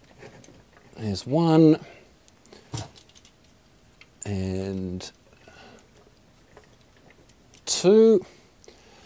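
A man speaks briefly and close by.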